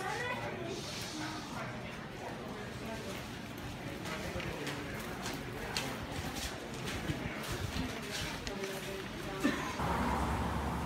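A crowd of people chatters and murmurs all around.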